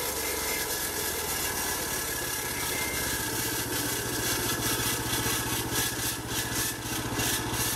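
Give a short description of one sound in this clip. A petrol engine on a sawmill runs loudly and steadily.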